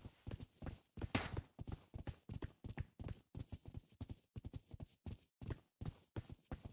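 Boots thud on hard ground and wooden steps in quick footsteps.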